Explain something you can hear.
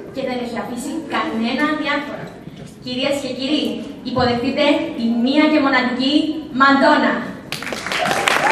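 A young woman speaks into a microphone with animation, heard through loudspeakers in a large hall.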